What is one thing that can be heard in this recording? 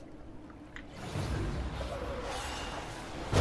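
Magic spells crackle and boom in a fight.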